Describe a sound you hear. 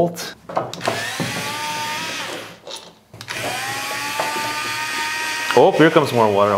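An electric screwdriver whirs steadily.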